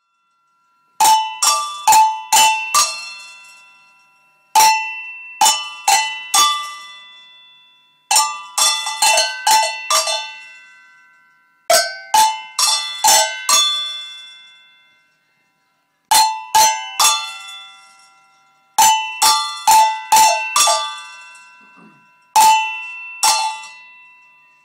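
Bell-like notes ring out in short, quick melodic phrases, each note fading slowly.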